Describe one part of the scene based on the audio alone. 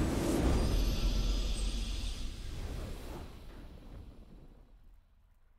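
A triumphant game victory fanfare booms and slowly fades away.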